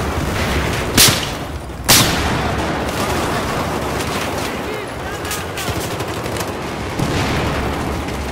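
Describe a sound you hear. Loud blasts burst nearby.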